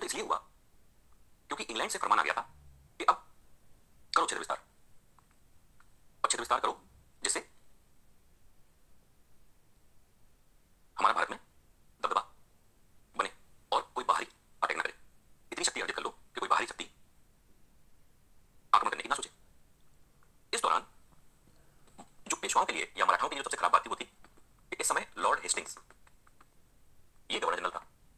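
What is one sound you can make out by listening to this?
A middle-aged man lectures calmly in short bursts, heard through a phone's small speaker.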